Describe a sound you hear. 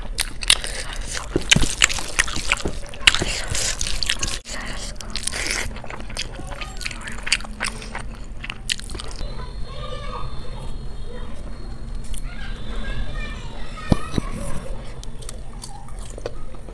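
A hand squishes and mixes soft rice with wet, sticky sounds.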